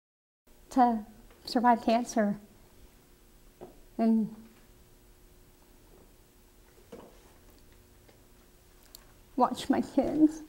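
A middle-aged woman speaks calmly and thoughtfully close to a microphone, with pauses.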